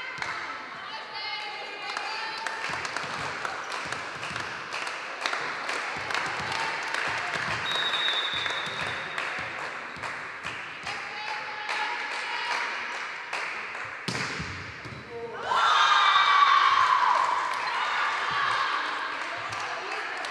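Sneakers squeak on a hard court floor in a large echoing hall.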